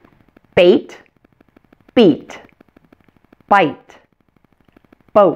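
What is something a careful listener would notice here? A woman speaks single words clearly and slowly into a close microphone, with pauses between them.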